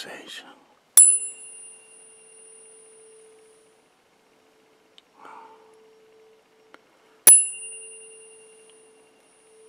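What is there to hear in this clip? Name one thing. A tuning fork is struck and rings with a clear, steady tone that slowly fades.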